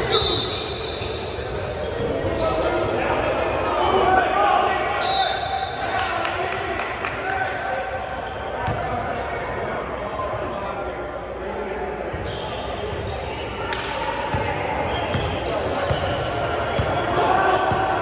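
Men call out to each other across the echoing gym.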